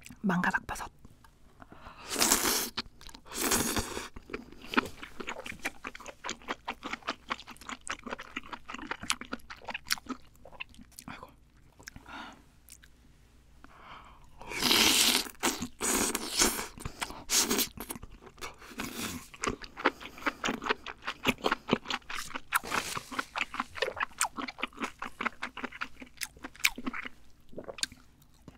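A young woman chews food wetly with many small smacking sounds, close to the microphone.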